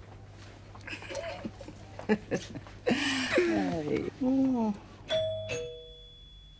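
An elderly woman laughs and speaks warmly.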